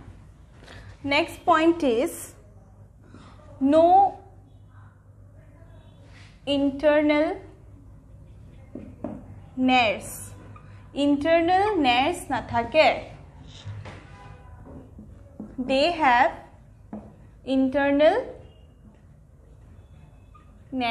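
A young woman speaks calmly in short phrases.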